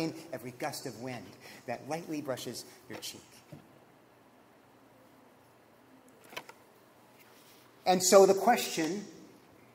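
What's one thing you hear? A man speaks calmly and clearly into a microphone in an echoing room.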